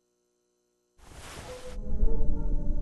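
Paper rustles as a sheet is picked up.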